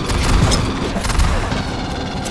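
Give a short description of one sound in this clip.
Heavy blows thud in a close struggle.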